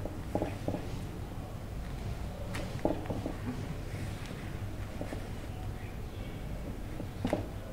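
Fabric rustles softly as pins are pushed into it.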